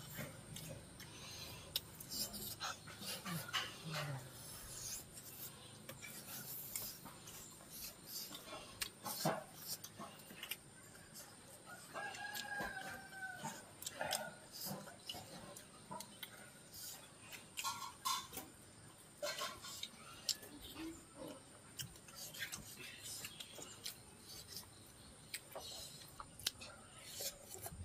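A boy chews and smacks his lips up close.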